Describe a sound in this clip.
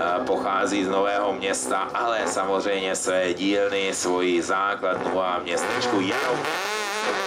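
A racing car engine revs sharply in short bursts.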